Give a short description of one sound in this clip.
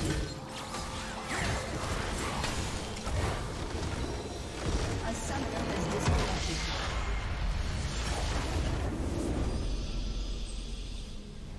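Game spells and blows crash and crackle loudly in a busy fight.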